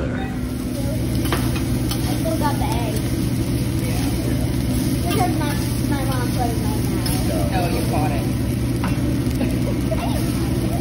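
Rice sizzles on a hot griddle.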